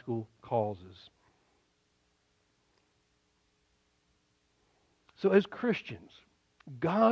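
An elderly man speaks slowly and expressively through a microphone, with long pauses.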